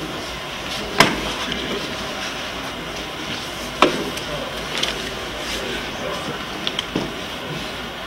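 Bare feet thud and slap on a mat during sparring.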